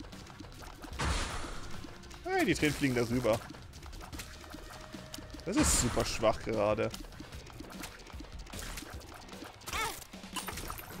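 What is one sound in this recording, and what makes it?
Short electronic game sound effects burst and squeal.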